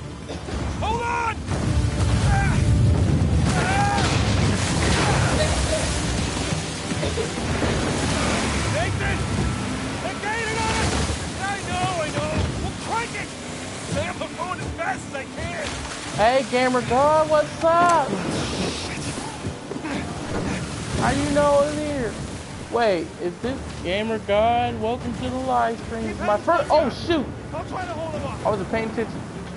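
Stormy waves crash and roar around a boat.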